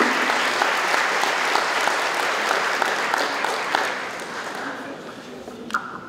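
An audience applauds in a large room, then the applause fades.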